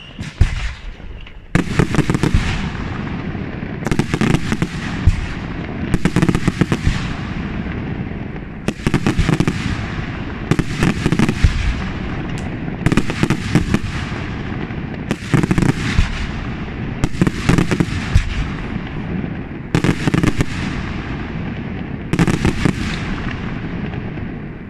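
Fireworks crackle and fizz as they spread.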